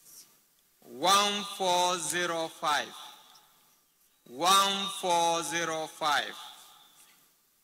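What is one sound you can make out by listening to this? A man speaks through a loudspeaker.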